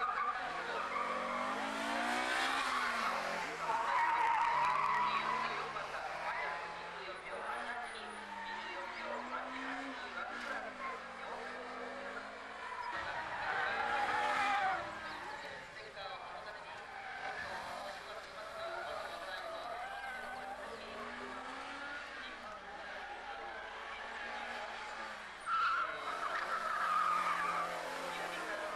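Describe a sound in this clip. A car engine revs hard, rising and falling in pitch as it drives past.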